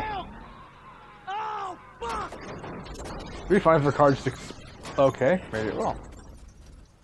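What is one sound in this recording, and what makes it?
A car tumbles and crashes hard onto the ground.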